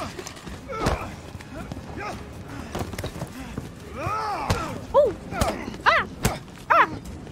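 Heavy blows thud in a brawl.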